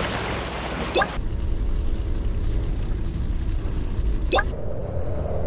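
A short whoosh sounds as a vehicle changes shape.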